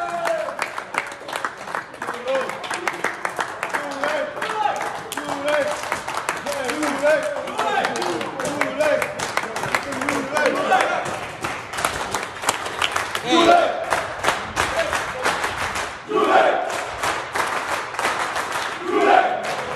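A group of men sing together loudly in a room.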